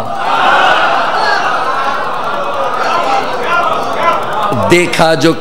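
A man speaks forcefully and with emotion through a loud microphone in an echoing space.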